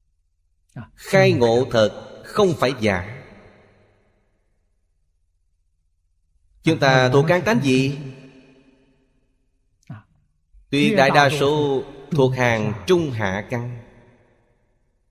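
An elderly man speaks calmly and slowly into a microphone, with pauses between phrases.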